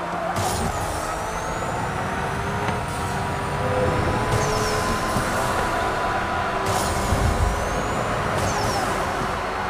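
Tyres screech as a car drifts through bends.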